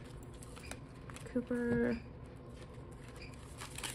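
A plastic sleeve crinkles as bills are slid into it.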